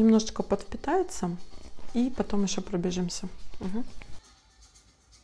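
A woman speaks calmly and close to the microphone.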